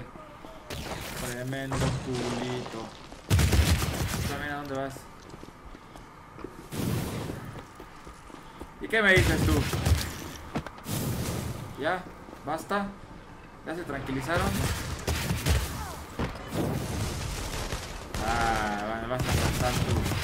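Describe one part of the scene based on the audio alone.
A young man talks through a headset microphone.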